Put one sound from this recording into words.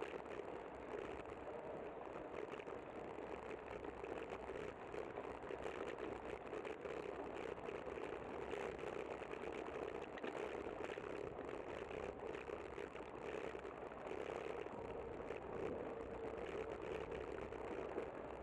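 Wind buffets steadily outdoors.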